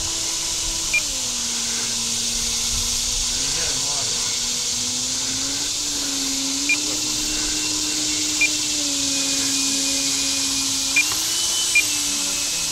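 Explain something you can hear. A model jet engine's pitch drops and rises as the throttle changes.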